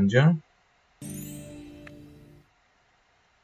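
Game tiles clear with a bright chime that fades away.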